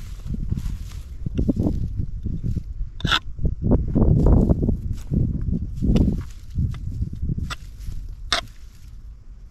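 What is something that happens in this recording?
A hoe chops and scrapes into dry soil.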